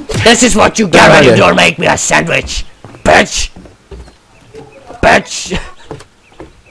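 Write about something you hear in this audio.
A young man talks excitedly and loudly into a headset microphone.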